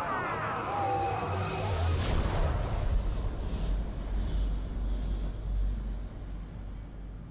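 A deep roaring rumble surges as a beam of energy blasts into the sky.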